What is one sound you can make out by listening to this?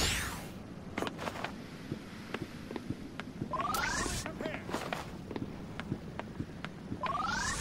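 A game character's footsteps tap on a concrete rooftop.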